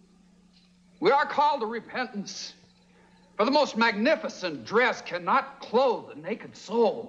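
A man speaks quickly and with animation.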